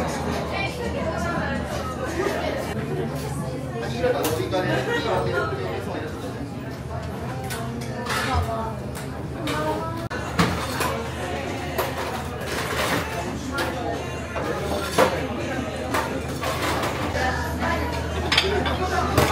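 Dishes and utensils clink and clatter.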